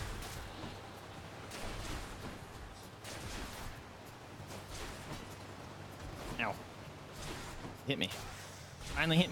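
Video game combat effects clash and whoosh in quick bursts.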